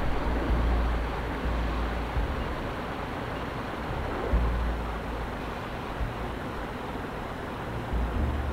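A glowing energy blade hums steadily.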